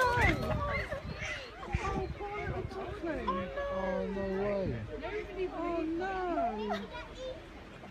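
Lemurs call out with high, wavering cries.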